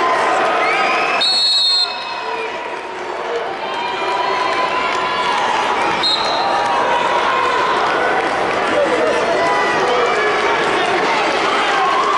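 Shoes squeak sharply on a mat.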